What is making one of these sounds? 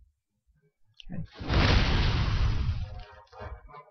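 A magic blast bursts with a loud roaring whoosh.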